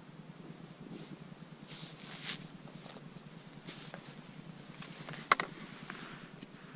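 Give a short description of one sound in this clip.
Footsteps rustle and crunch over dry pine needles and twigs.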